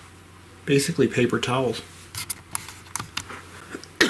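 A plastic case rattles and clicks as hands handle it.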